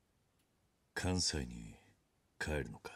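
A man asks a question calmly, close by.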